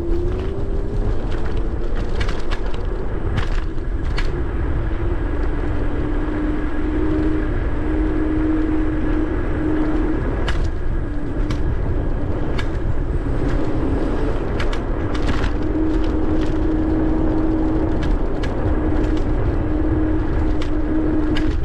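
Wind rushes loudly past while moving outdoors.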